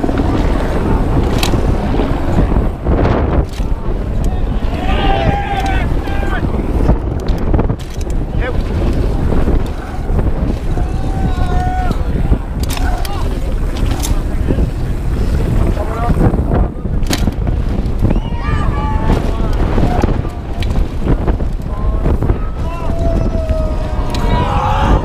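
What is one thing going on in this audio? Wind rushes loudly past a fast-moving bike.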